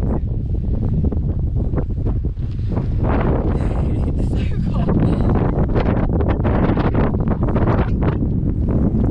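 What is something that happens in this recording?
Wind buffets loudly across a microphone outdoors.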